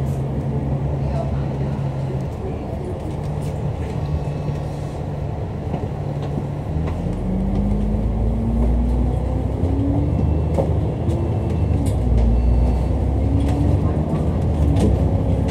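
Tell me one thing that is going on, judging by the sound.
A bus engine rumbles and rises in pitch as the bus pulls away.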